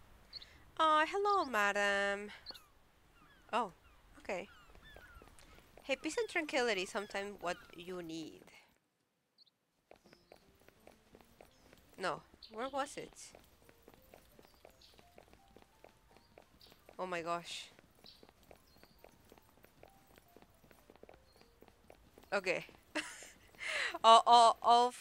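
A young woman talks with animation close to a headset microphone.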